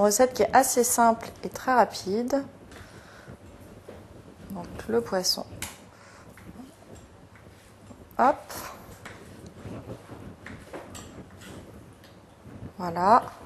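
A woman speaks calmly into a close microphone, with pauses.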